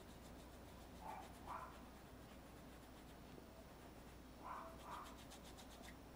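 A paintbrush scrapes softly across canvas.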